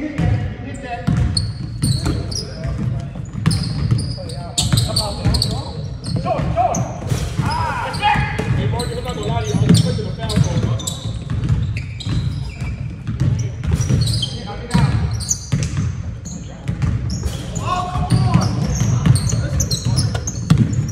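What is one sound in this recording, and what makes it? A basketball bounces on a hardwood floor with a hollow thud.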